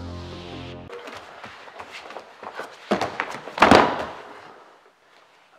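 Bare feet shuffle and thump on a mat.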